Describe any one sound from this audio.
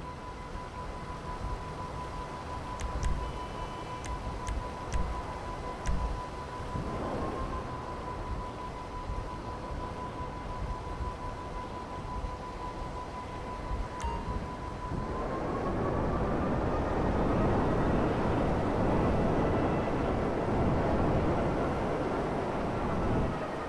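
A hovering jet bike's engine hums steadily, then swells into a louder roar.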